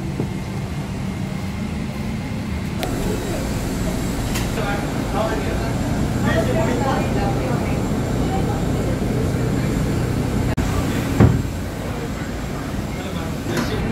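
A steady low hum of aircraft machinery drones.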